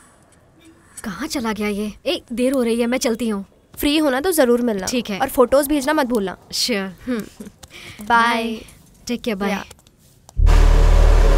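A young woman talks with animation nearby.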